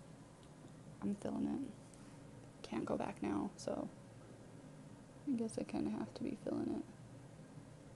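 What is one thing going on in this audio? A young woman talks calmly and close into a microphone.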